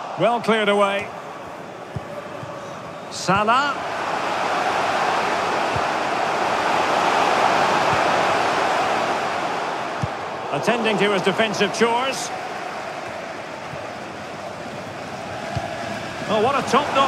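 A stadium crowd roars steadily, swelling and fading.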